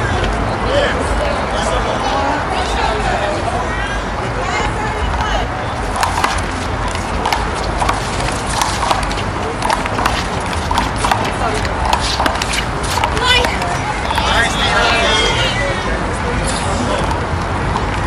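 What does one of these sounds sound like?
Young men and women call out to one another outdoors.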